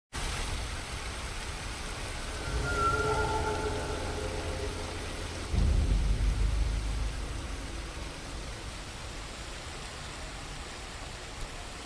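A waterfall roars steadily nearby.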